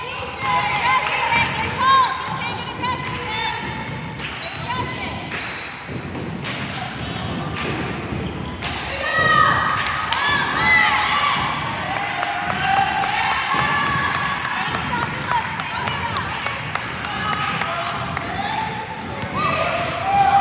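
Voices of girls and onlookers call out in a large echoing gym.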